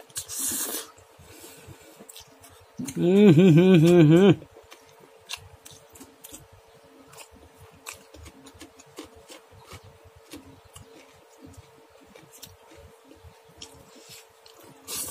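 A man chews food with soft wet clicks.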